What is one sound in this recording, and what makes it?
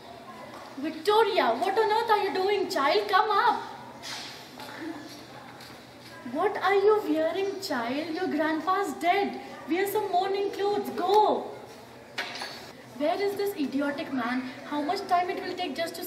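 A young woman speaks loudly and dramatically nearby.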